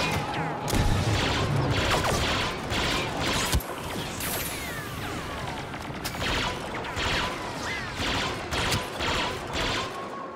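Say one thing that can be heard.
A jetpack roars with thrust.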